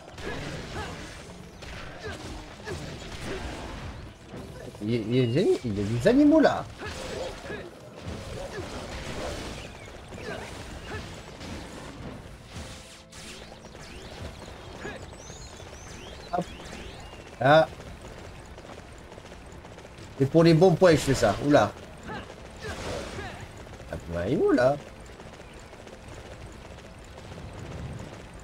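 Horse hooves gallop over the ground.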